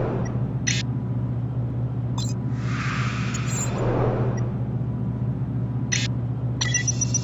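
Short electronic interface blips sound as a menu map changes.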